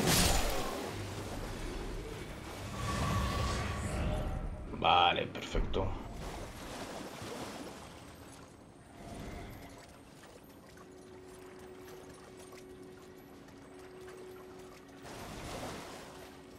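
A horse's hooves splash through shallow water.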